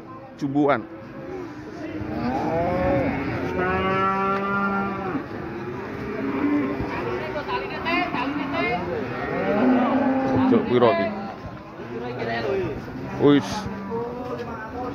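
Men talk loudly nearby, outdoors.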